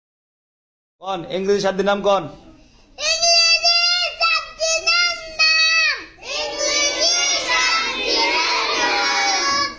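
A young boy sings loudly, close by.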